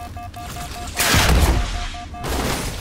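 A loud video game explosion booms.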